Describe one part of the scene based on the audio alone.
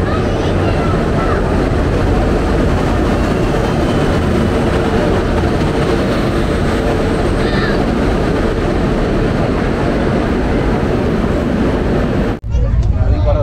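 A busy crowd murmurs and bustles nearby.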